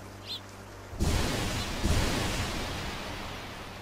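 A burst of gas hisses out loudly and slowly fades.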